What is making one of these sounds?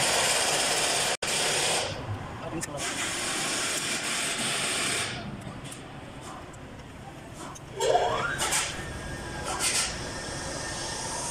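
A wrench clicks and clanks against metal engine parts.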